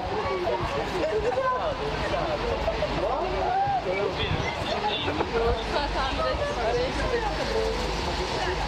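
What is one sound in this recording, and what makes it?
Several voices chatter over one another.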